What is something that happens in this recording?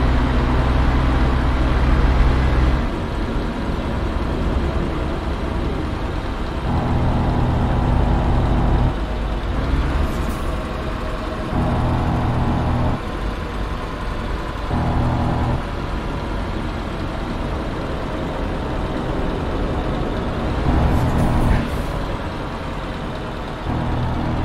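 A truck engine hums steadily while driving at speed.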